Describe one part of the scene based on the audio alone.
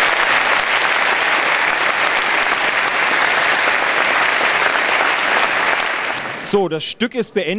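An audience applauds loudly in an open-air space.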